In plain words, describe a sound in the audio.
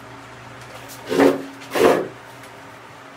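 A sheet of paper crinkles and rustles.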